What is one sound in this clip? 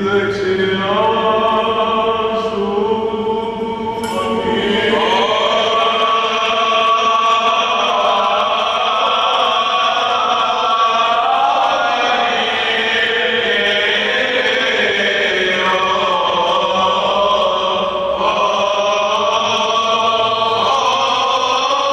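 Men chant in slow, sustained voices that echo through a large hall.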